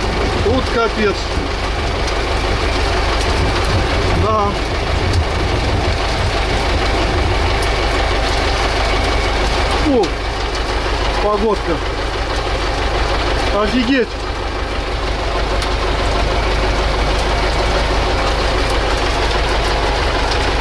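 The tractor cab rattles and shakes over the field.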